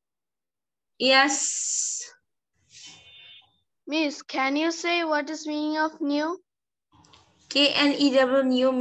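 A woman speaks clearly over an online call, with pauses.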